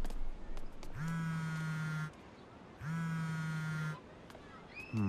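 A phone rings with a repeating electronic ringtone.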